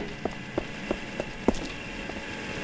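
Footsteps tap quickly on a hard metal floor.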